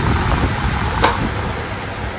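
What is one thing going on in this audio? A plastic button clicks on a fan.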